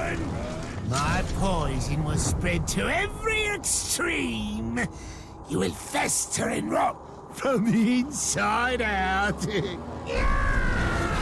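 A man speaks menacingly in a deep, growling voice.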